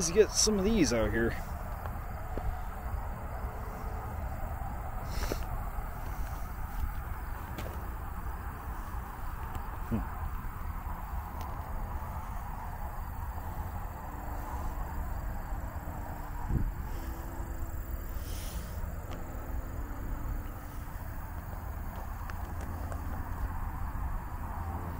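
Footsteps crunch slowly on a rough paved road.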